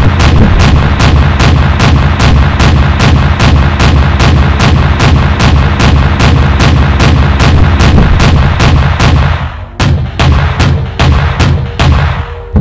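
Twin anti-aircraft guns fire in rapid, steady bursts.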